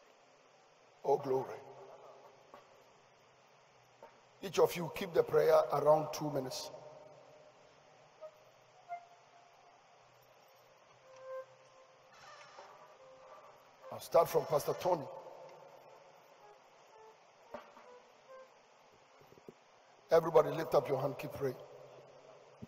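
A man speaks loudly through a microphone in short bursts, with pauses between.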